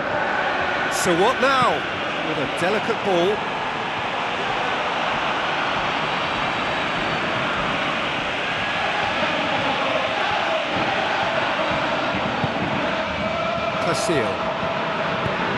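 A referee's whistle blows sharply a few times.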